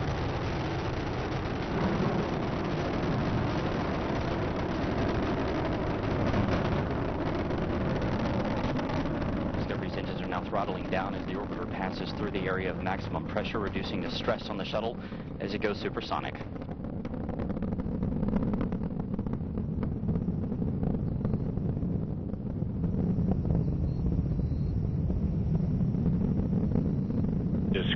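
A rocket engine rumbles with a deep, steady roar.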